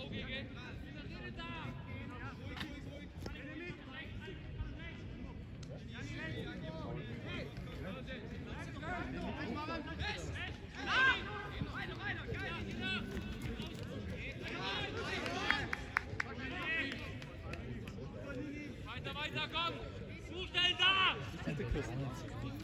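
Players shout to each other across a large outdoor field.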